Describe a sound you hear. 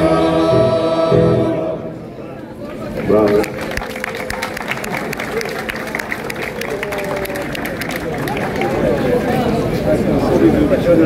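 A large choir sings together outdoors through loudspeakers.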